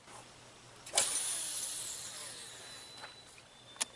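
A fishing line whizzes off a reel during a cast.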